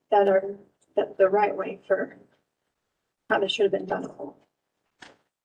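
A woman speaks calmly into a microphone, heard over an online call.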